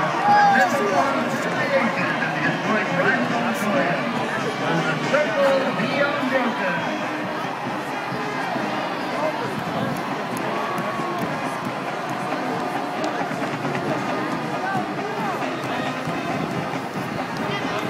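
A large stadium crowd chatters and cheers in a wide open space.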